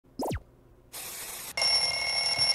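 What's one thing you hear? Television static hisses.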